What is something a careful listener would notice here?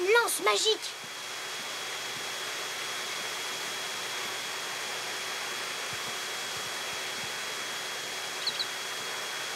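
A vacuum cleaner hums steadily.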